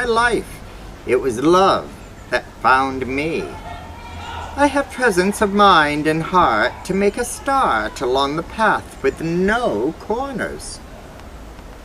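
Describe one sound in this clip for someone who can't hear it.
A middle-aged man reads aloud from a book close to the microphone outdoors.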